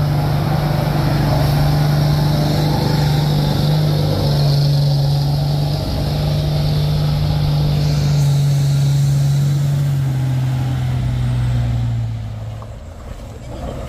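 A truck's diesel engine hums loudly as it drives slowly past close by.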